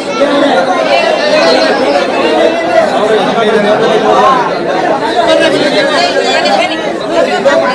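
A crowd of men and women talk loudly over one another close by.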